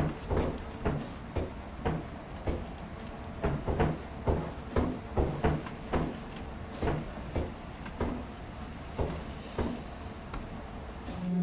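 Footsteps clang steadily on metal stairs and walkways.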